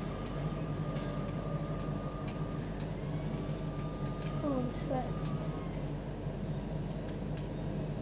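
A vehicle engine rumbles steadily through a small loudspeaker.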